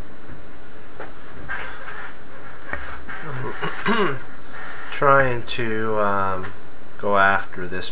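An older man speaks calmly into a close microphone.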